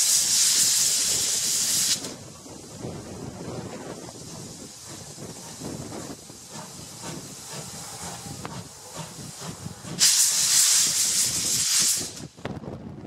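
A steam locomotive chugs and rumbles as it rolls slowly along the rails.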